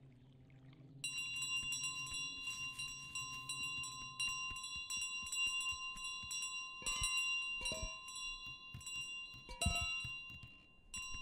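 A small bell jingles.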